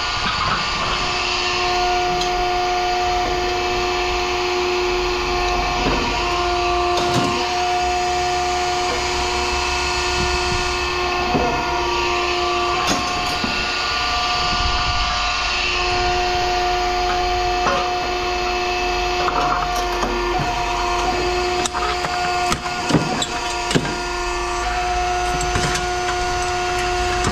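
Scrap metal parts clink and clatter as hands rummage through them.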